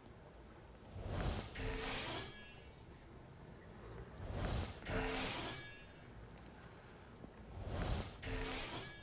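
Magical chimes shimmer and sparkle in short bursts.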